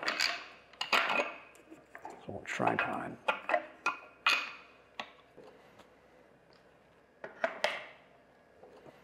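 Metal parts click and knock as a mount is handled.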